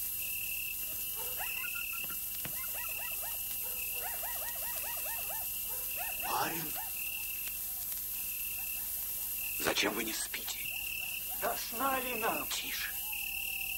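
A man speaks in a low, calm voice, heard through an old, hissy recording.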